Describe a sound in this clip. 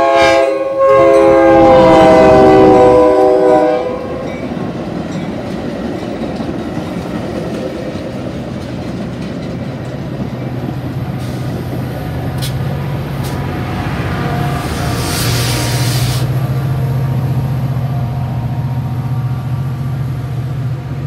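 Train wheels rumble and clatter loudly along the track close by.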